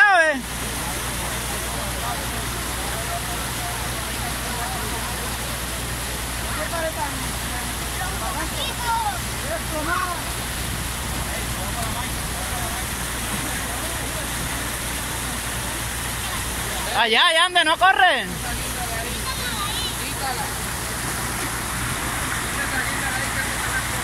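Muddy water rushes and gurgles steadily along a ditch.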